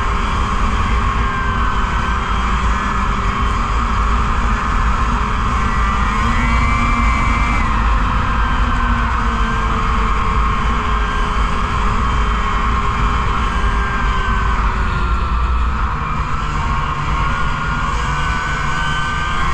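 A snowmobile engine drones loudly and steadily up close.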